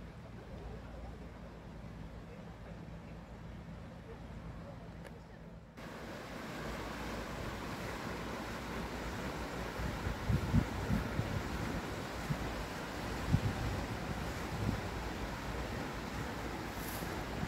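Wind gusts into the microphone outdoors.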